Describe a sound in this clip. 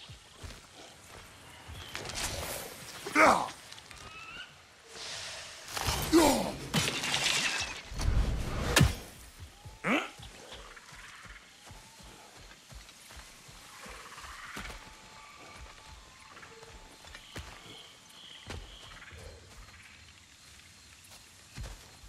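Heavy footsteps crunch over soft ground.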